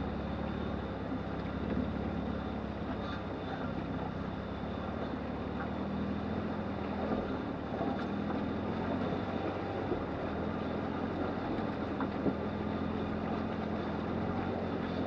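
River water rushes and splashes over shallow rapids nearby.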